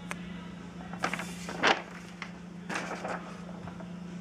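A sheet of cardboard rustles and scrapes as it is moved by hand.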